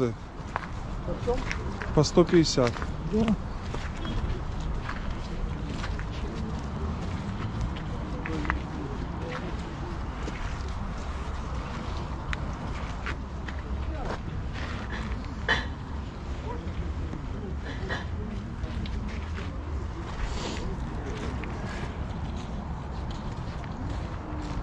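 People talk in a murmur nearby outdoors.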